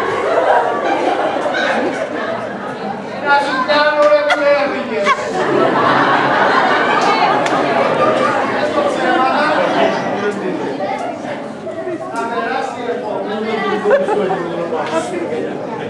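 A middle-aged man speaks loudly and with animation, heard from within an audience.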